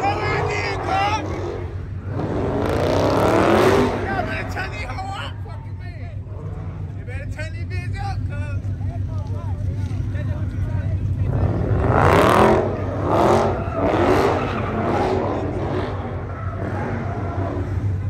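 A crowd of young people shouts and cheers loudly outdoors.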